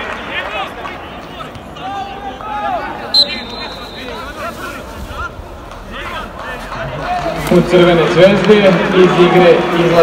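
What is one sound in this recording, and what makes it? Men shout and call out across a large, echoing, nearly empty stadium.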